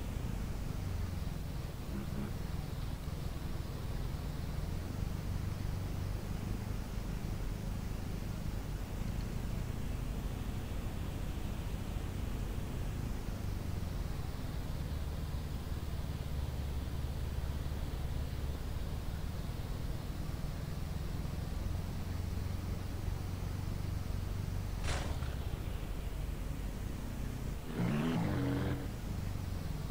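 Tyres roll over rough ground.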